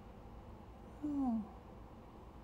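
A young woman sighs briefly close by.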